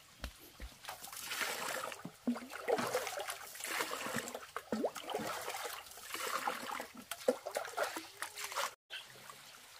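Water splashes as it is poured from a ladle into a pot.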